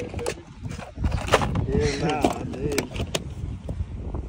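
A plastic tackle box rattles as it is handled.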